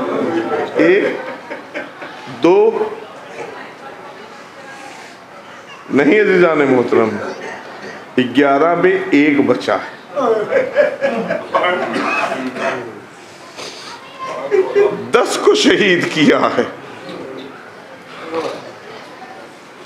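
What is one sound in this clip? An elderly man speaks with feeling into a microphone, in bursts with pauses.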